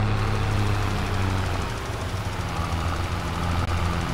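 A tractor engine's pitch drops as it slows.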